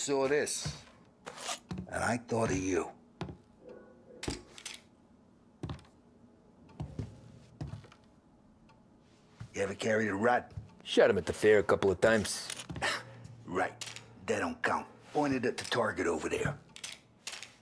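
A younger man answers calmly, close by.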